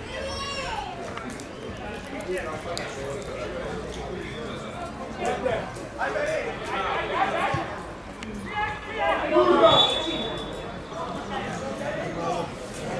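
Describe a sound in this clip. Men shout and call out to each other across an open field outdoors.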